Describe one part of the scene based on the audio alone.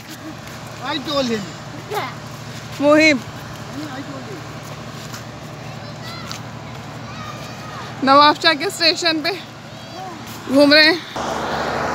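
A boy talks excitedly close by.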